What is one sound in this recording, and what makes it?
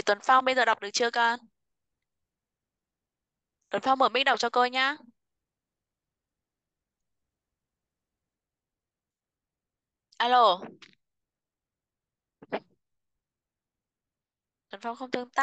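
A woman speaks calmly in short phrases through an online call.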